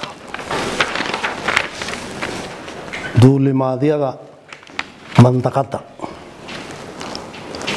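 An elderly man speaks calmly into a close microphone.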